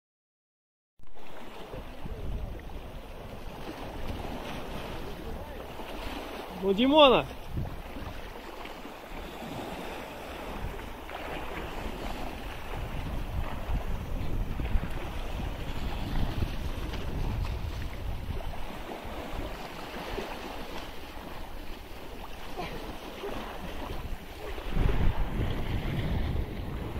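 Waves splash against rocks close by.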